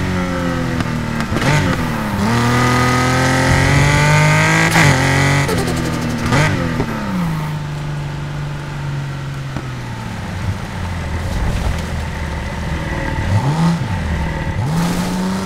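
Tyres screech on wet pavement.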